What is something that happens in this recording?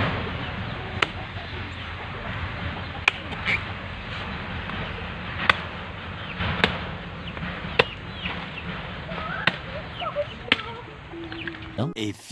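A machete chops into coconuts with sharp knocks.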